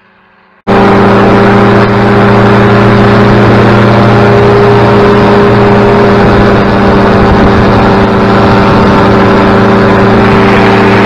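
A powered parachute's propeller engine roars at full throttle, heard close up.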